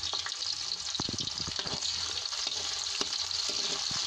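A spoon scrapes against a pan.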